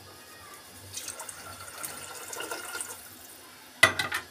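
Water pours and splashes into a pot.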